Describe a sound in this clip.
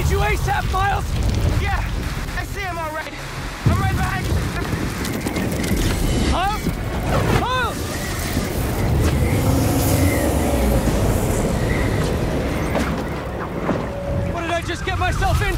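A strong wind roars and howls steadily.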